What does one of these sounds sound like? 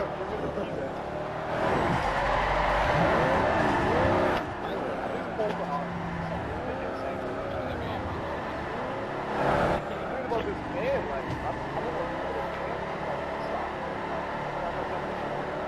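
A van engine revs and roars as it races.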